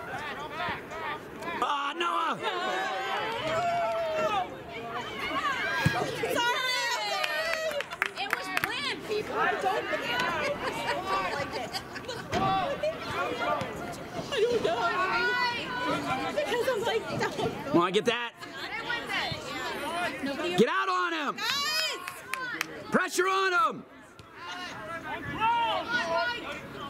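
Young players call and shout to each other across an open field.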